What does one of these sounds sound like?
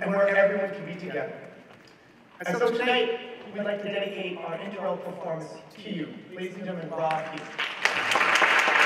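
A man speaks into a microphone over loudspeakers in a large hall.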